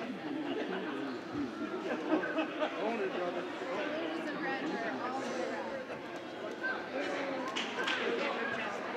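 A crowd of people chatter in a large echoing gym.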